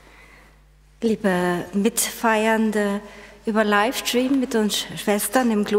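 A middle-aged woman sings through a microphone in an echoing room.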